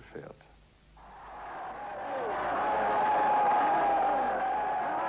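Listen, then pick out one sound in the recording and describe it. A large crowd cheers and roars, swelling louder.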